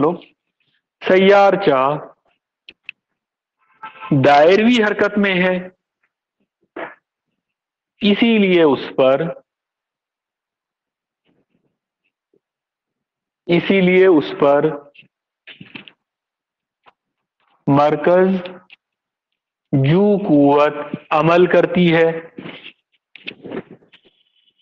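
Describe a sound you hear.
A middle-aged man speaks calmly close by, with pauses.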